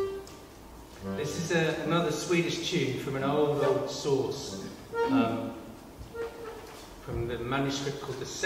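An accordion plays a lively tune.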